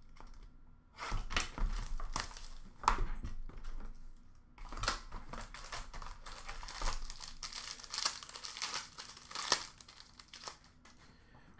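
A foil card pack crinkles and tears.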